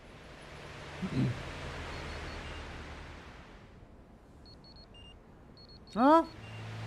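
A man speaks briefly close to a microphone.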